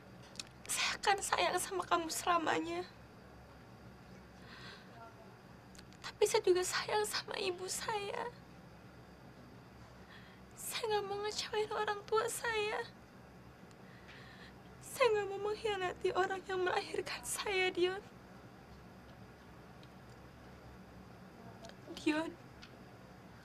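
A young woman speaks tearfully and pleadingly, close by.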